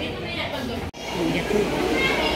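A baby babbles close by.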